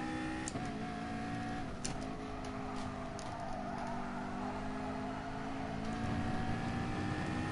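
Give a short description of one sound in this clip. A racing car engine roars steadily, shifting gears as it speeds along.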